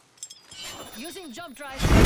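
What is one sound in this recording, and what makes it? A zipline hums and whooshes.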